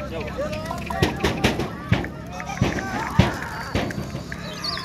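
Pigeon wings flap loudly as a flock takes off.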